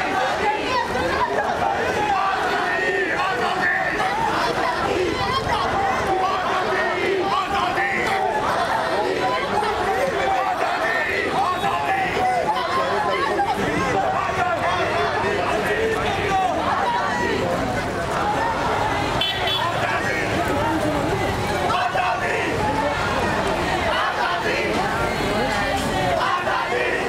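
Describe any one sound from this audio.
A crowd of men and women chants and talks loudly outdoors.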